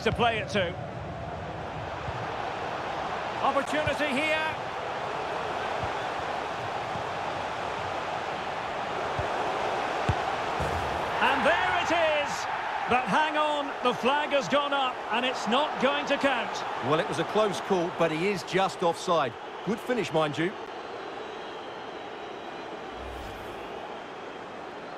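A large crowd roars and cheers steadily in a stadium.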